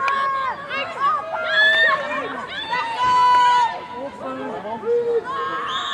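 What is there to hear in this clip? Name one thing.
Young women shout and call to each other across an open playing field.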